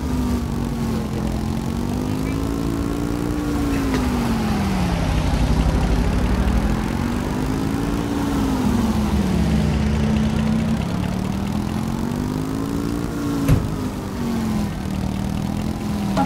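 A small motor scooter engine hums steadily, its pitch rising and falling as it speeds up and slows down.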